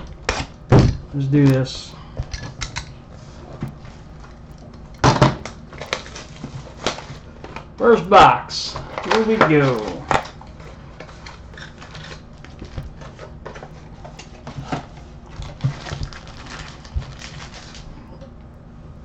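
Foil card wrappers crinkle and rustle.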